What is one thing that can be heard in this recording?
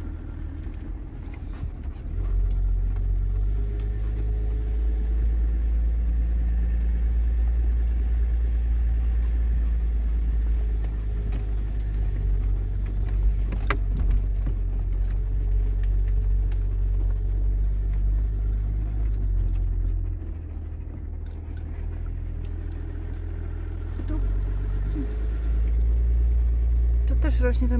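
A car engine rumbles low and steady inside the cabin, surging as it climbs.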